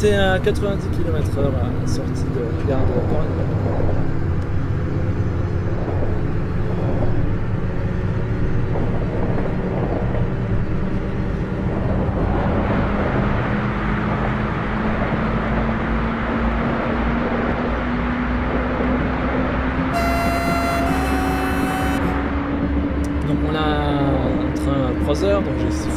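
Wheels rumble and clatter on the rails.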